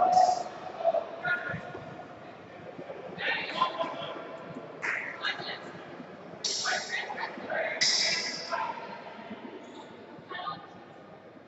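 Men and women talk and call out in a large echoing hall.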